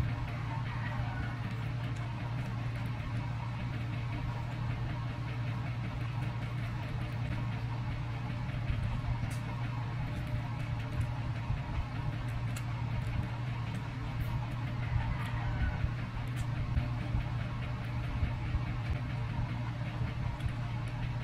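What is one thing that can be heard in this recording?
A young woman chews food noisily close to the microphone.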